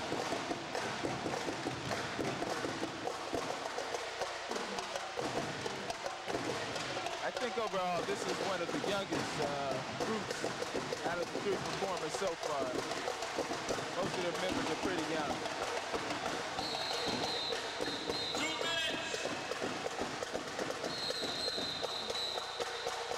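Drums beat a fast marching rhythm.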